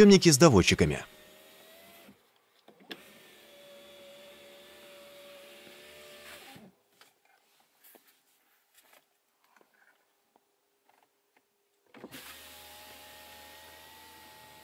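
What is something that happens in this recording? An electric car window motor hums steadily as the glass slides.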